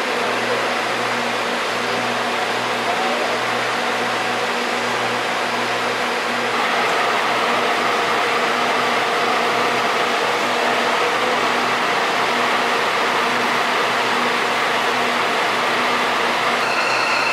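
A diesel locomotive engine idles with a steady, low hum.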